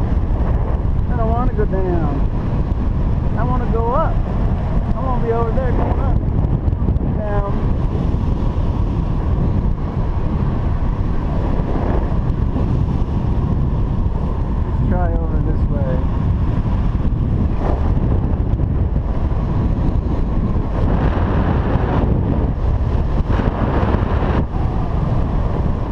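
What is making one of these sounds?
Strong wind rushes and buffets loudly, as if in open air at height.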